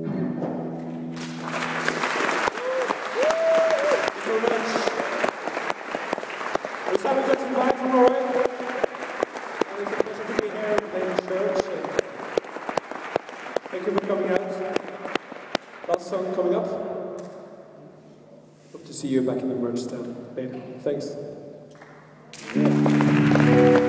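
Electric guitars play chords.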